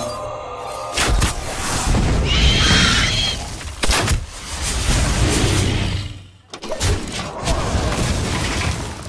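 Impacts crash loudly.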